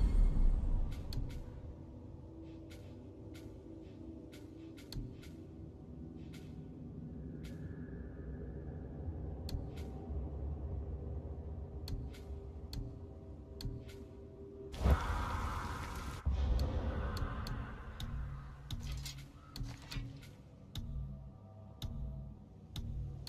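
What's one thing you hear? Soft menu clicks tick repeatedly as selections change.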